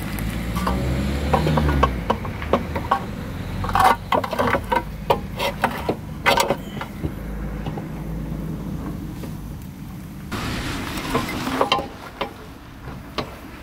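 Metal parts clink and rattle as they are handled.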